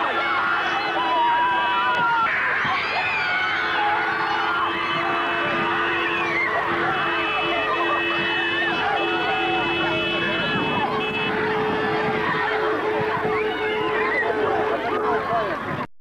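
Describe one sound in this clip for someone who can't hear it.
A crowd of men, women and children cheers and shouts outdoors.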